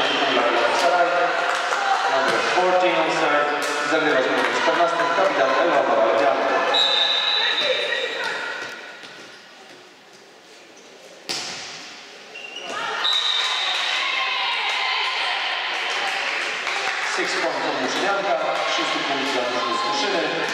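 A crowd cheers and chants in a large echoing hall.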